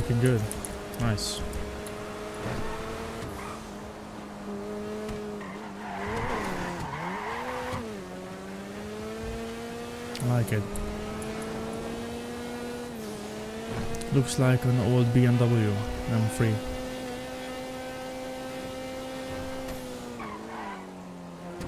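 A car engine hums steadily and shifts in pitch as the car speeds up and slows down.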